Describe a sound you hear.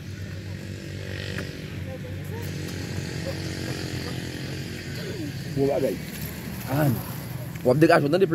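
A motorcycle engine idles and hums steadily nearby.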